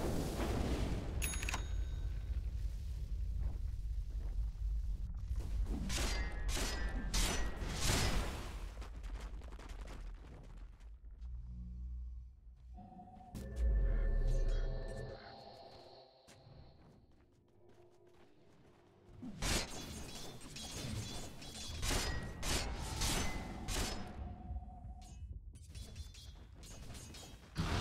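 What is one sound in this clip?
Video game spells and weapon strikes crackle and clash in bursts.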